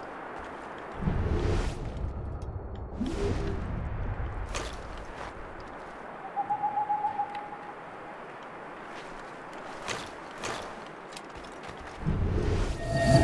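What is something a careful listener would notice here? A deep, rumbling whoosh swells and fades.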